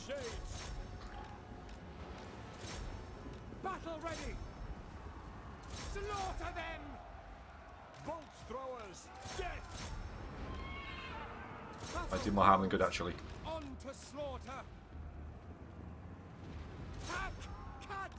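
Weapons clash and clang in a distant battle.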